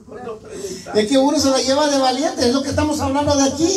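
An older man sings loudly through a microphone and loudspeakers.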